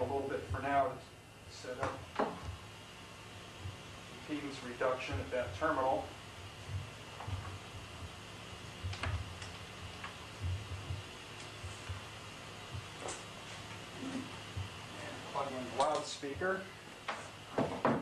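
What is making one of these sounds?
Equipment clicks and knocks as a man handles it.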